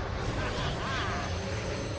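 A swirling wind gusts.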